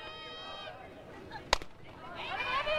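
A softball smacks sharply into a catcher's mitt.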